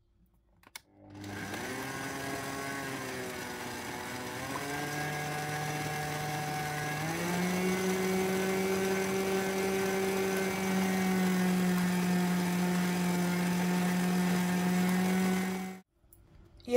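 An electric mixer motor hums steadily, speeding up in steps.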